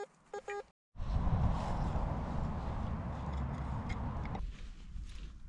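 A trowel scrapes and digs into soil.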